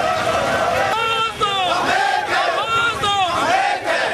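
A man shouts slogans with animation.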